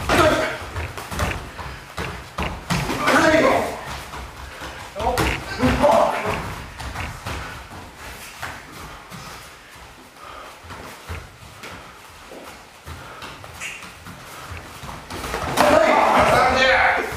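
A man shouts sharply in an echoing hall.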